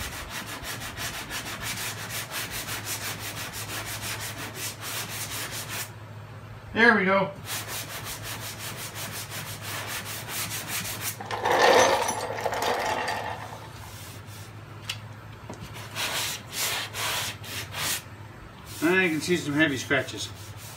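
A sanding block rubs in quick strokes over a car's metal body.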